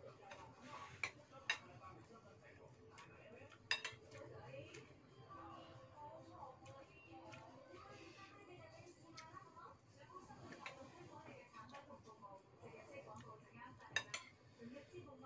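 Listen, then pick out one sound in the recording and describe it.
A metal spoon clinks against a bowl.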